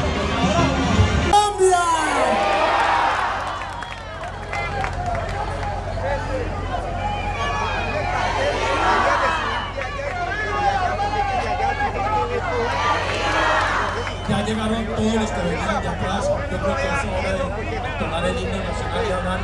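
Many voices of men and women talk at once nearby.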